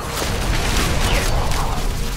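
Weapon blows and magic effects crash and crackle in a fight.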